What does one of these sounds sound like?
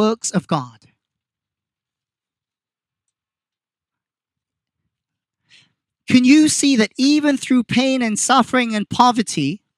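A man speaks into a microphone through a loudspeaker outdoors, pausing between phrases.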